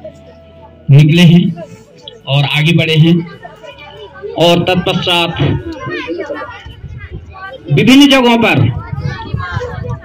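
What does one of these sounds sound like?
An elderly man speaks loudly into a microphone, heard through a loudspeaker outdoors.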